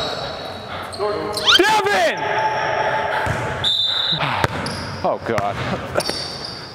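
Men and women playing basketball call out to each other.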